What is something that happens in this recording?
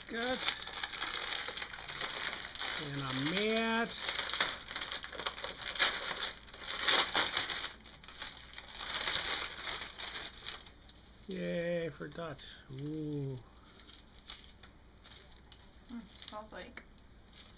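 Wrapping paper rustles and crinkles.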